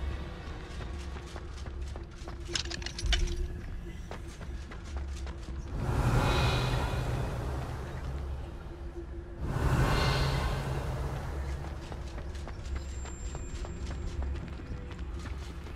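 Quick footsteps patter over stone and wooden boards.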